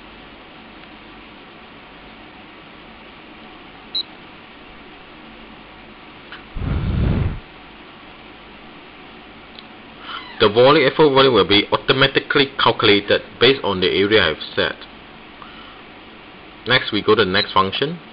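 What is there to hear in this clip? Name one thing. Buttons on a small handheld meter click softly.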